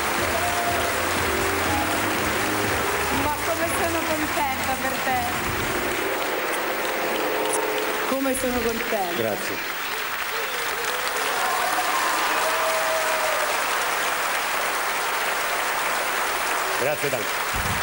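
A large crowd applauds and cheers loudly in a big hall.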